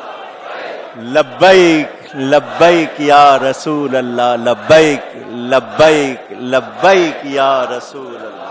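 A large crowd of men chants loudly in unison.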